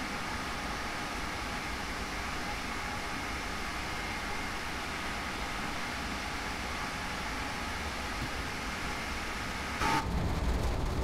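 A high-speed train rushes past with a steady roar.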